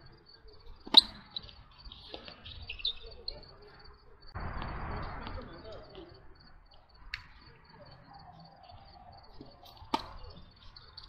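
A tennis ball is struck sharply by a racket, again and again.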